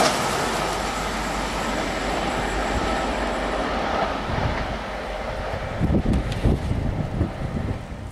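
An electric locomotive approaches from afar.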